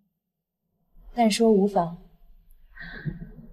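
A young woman speaks calmly in reply, close by.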